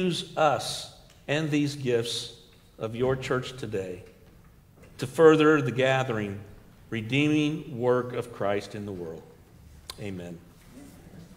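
A middle-aged man speaks through a microphone in a reverberant hall.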